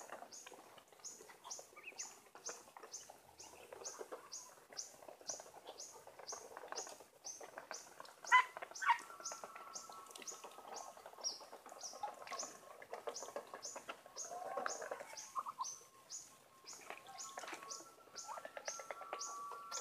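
Ducks peck and shuffle on dry dirt ground.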